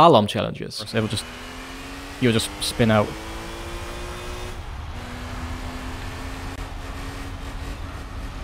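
A racing car engine drones and slowly climbs in pitch as it speeds up.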